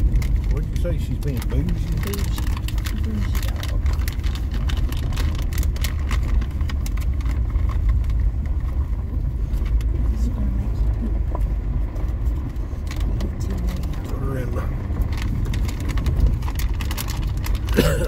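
Tyres crunch and rattle over a gravel road.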